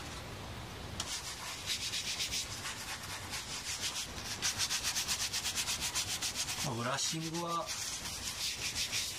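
A brush scrubs rapidly back and forth over leather.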